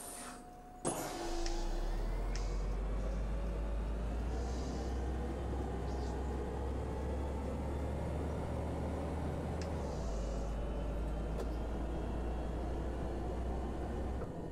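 A bus engine hums and drones steadily while driving.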